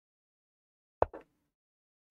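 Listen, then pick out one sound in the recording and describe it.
A chess move clicks once.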